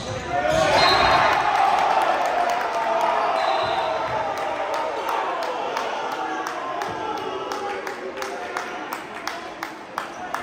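Sneakers squeak on a hardwood floor.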